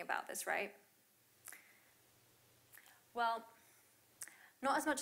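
A young woman speaks calmly through a microphone in a large room, with pauses between phrases.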